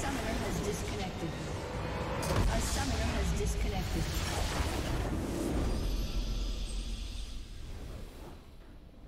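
Game spells and weapons clash and crackle in a busy battle.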